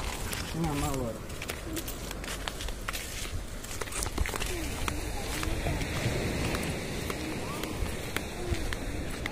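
Wind blows loudly outdoors.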